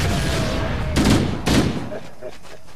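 A rifle fires short bursts close by.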